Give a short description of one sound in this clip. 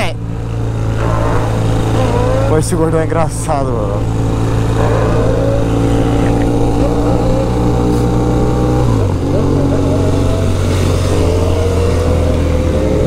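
A motorcycle engine hums steadily close by, with the pitch dropping as it shifts gear.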